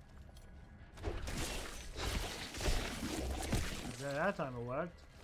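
Spell blasts crash and rumble in a fight.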